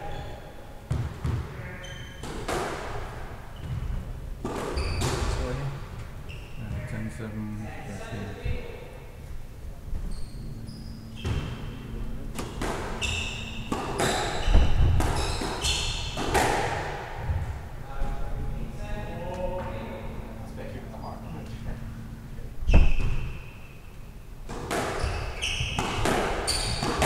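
A squash ball smacks sharply off rackets and walls in an echoing court.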